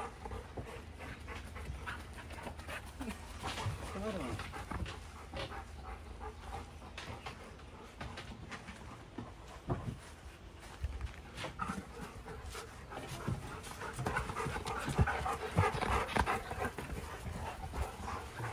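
Dogs' paws patter on grass.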